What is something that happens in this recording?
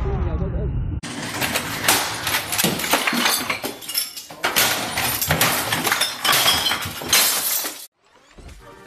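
A man bangs hard on a desk with heavy, repeated blows.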